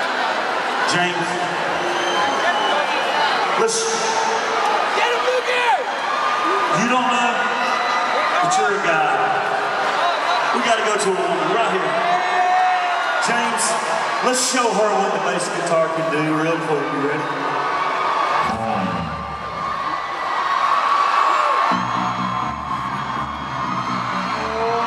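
A crowd cheers and screams.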